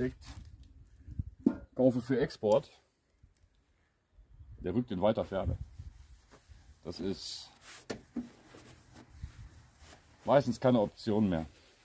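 A cloth rubs and squeaks against a metal panel.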